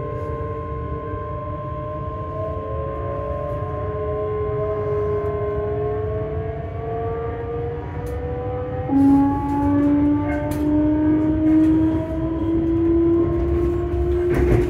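A train rumbles along the track.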